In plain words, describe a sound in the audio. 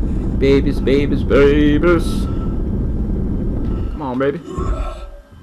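A monstrous creature shrieks.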